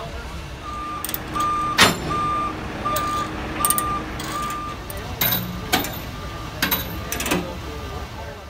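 Metal chains clank and knock against a trailer.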